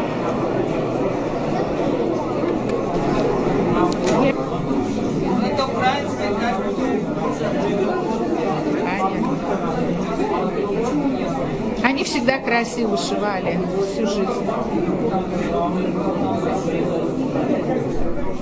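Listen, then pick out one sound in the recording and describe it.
A crowd of men and women chatters all around in a large echoing hall.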